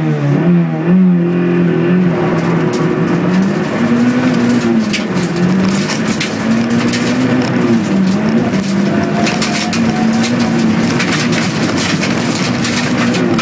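Tyres crunch and rattle over loose gravel.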